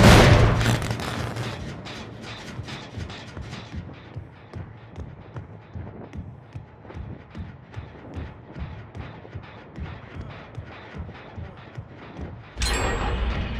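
Heavy footsteps walk steadily over a hard floor.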